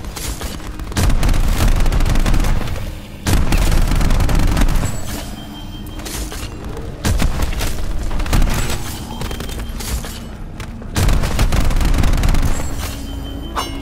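A weapon fires in loud, booming bursts.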